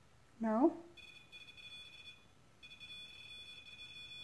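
A small electronic toy gives off a high, steady beeping tone.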